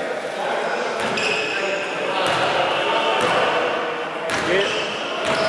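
A basketball bounces on a hard court floor.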